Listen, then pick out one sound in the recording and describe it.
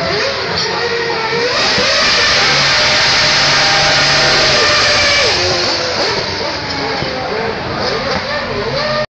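Racing car engines scream loudly, revving up and down close by.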